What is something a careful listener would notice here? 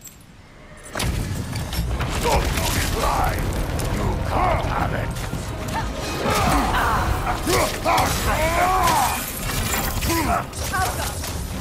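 Heavy weapons clash and thud against a shield in a fierce fight.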